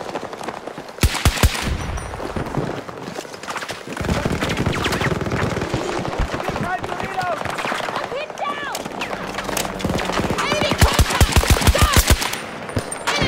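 Rapid gunfire cracks in short bursts close by.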